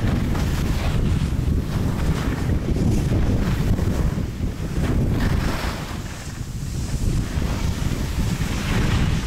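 Skis scrape and hiss over snow close by.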